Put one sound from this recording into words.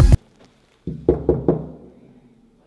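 A fist knocks three times on a door.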